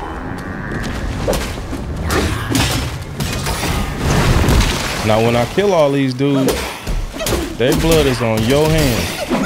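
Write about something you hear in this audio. Weapons clash and strike in quick blows during a fight.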